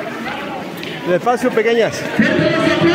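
Young girls call out with high voices close by.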